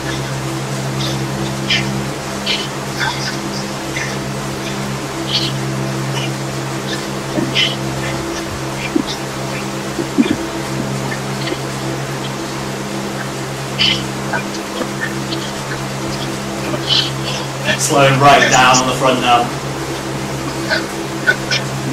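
A bike trainer hums steadily.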